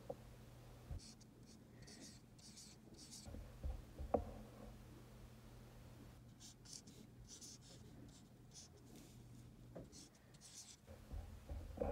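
A marker squeaks across a whiteboard in short strokes.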